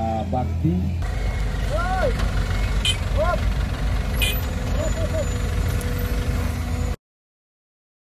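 A truck engine rumbles as the truck drives over rough ground.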